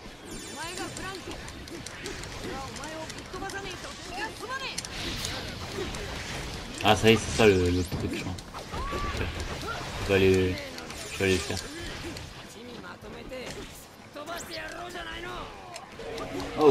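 Swords slash and blows strike in a fast fight.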